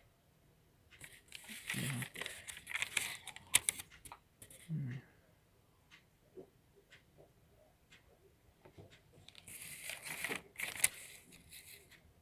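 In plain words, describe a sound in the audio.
A paper receipt rustles and crinkles in a hand.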